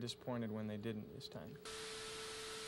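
A man speaks briefly through a television speaker.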